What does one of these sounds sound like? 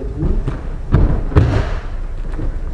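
A person is thrown and lands with a thud on a padded mat.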